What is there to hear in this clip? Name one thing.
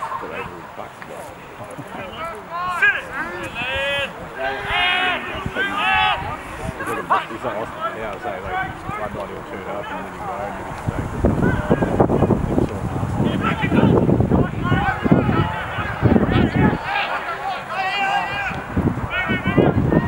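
Men shout across an open field during a game.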